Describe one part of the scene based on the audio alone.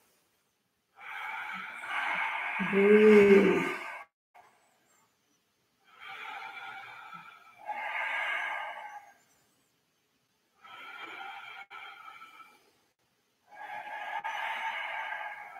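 People breathe out slowly and deeply.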